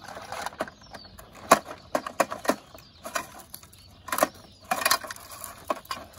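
Small plastic toy parts click and rattle as they are handled.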